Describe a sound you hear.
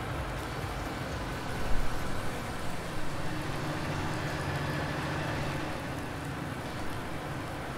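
A wood chipper engine runs with a steady rumble.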